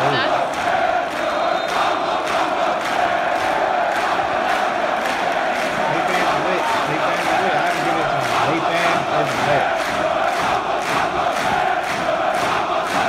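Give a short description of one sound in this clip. A large football stadium crowd roars, heard through a loudspeaker.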